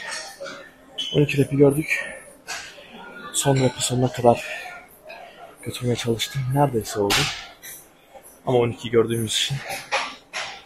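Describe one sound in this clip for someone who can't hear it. A young man talks animatedly, close by.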